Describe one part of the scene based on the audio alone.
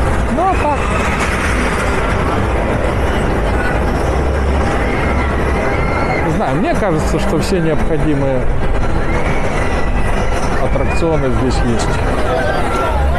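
A fairground swing ride whirs and rumbles as it spins.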